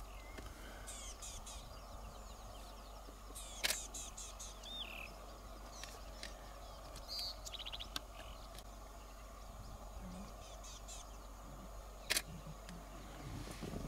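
A lion tears and chews at a carcass nearby.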